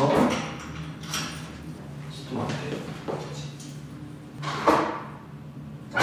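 Coins clink into a machine slot.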